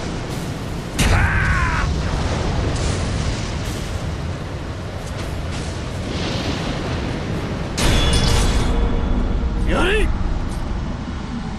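Swords clash and ring with sharp metallic strikes.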